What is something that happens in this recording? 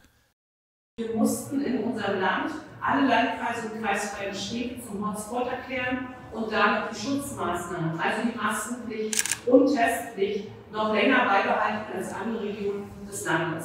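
A woman speaks calmly into microphones at close range.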